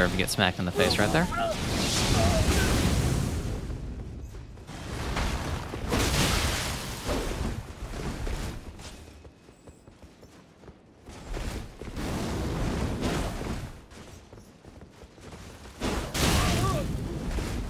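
Flames roar and burst in loud blasts.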